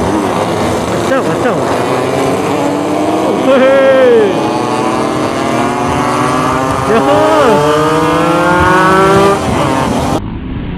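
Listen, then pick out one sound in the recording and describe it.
Nearby motorcycle engines rev up and down.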